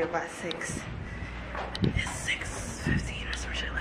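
A young woman talks quietly close by.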